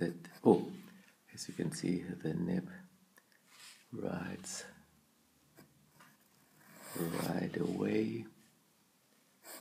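A pen nib scratches softly across paper.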